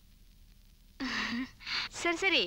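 A young woman talks on a phone with animation.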